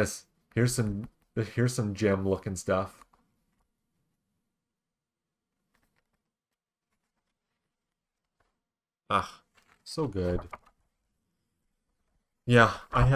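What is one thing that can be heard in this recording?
A man talks casually into a close microphone, in short bursts.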